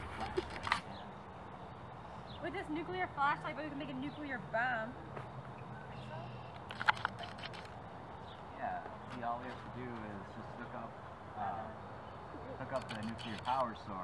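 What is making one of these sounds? A young woman speaks calmly outdoors.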